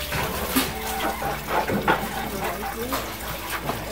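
Dishes clink as they are handled.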